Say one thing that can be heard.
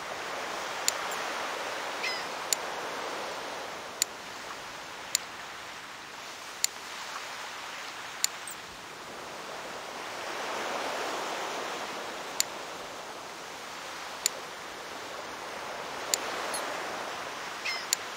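Waves wash and surge steadily.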